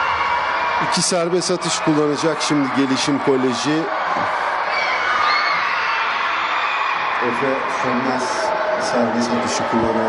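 A basketball bounces several times on a wooden floor.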